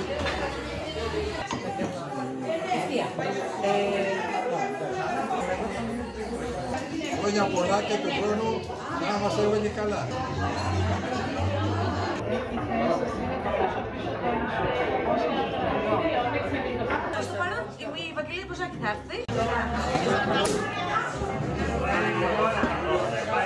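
Many adults chatter and talk at once in a busy room.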